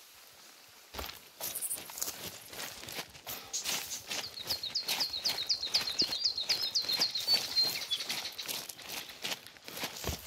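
Footsteps crunch through grass and twigs.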